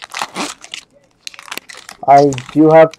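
A foil wrapper crinkles and tears as hands rip it open.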